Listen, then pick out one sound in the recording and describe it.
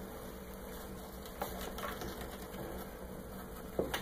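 A hand scratches softly at a wrapped wooden leg.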